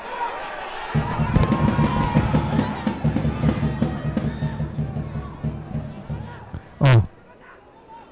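A crowd in a stadium cheers loudly and excitedly.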